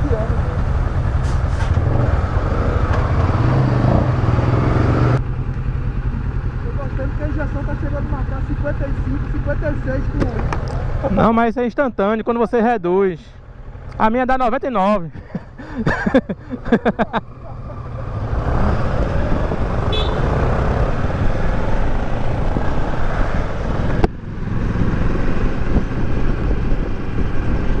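A motorcycle engine idles and revs.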